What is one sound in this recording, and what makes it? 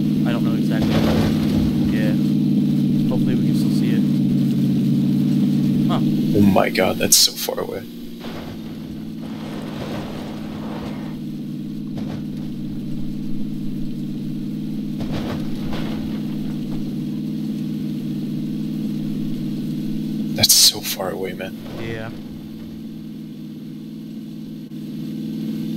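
A car engine hums steadily while driving over rough ground.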